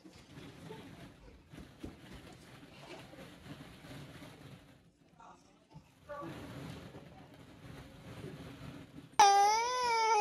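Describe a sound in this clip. Plastic balls rustle and clatter softly.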